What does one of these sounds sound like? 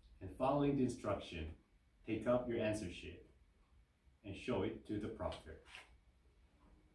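A man speaks clearly and calmly, reading out instructions.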